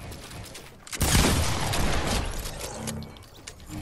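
A shotgun fires with a loud blast.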